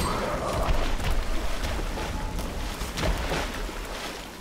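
A heavy blade swings and strikes with metallic impacts.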